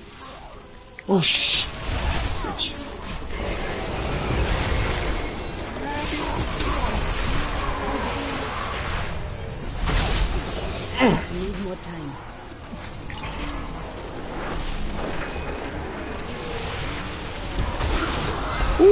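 Game combat sounds of spells and blows play throughout.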